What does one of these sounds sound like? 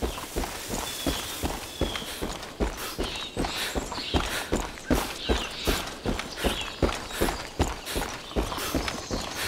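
Footsteps run quickly and steadily on a paved road.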